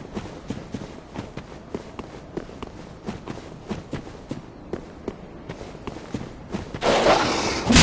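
Footsteps run quickly over stone and gravel.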